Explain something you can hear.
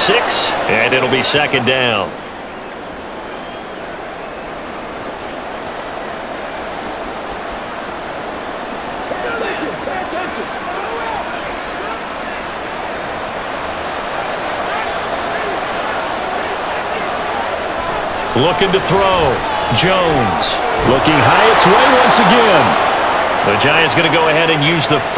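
A large crowd murmurs and roars in a stadium.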